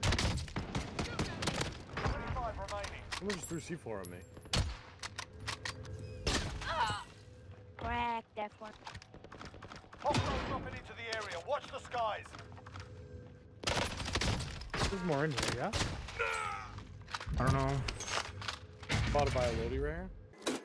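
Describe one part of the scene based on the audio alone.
Rapid gunshots crack repeatedly.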